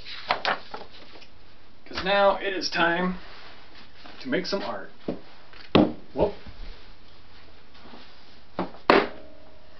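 Objects clunk and knock as a man rummages through them.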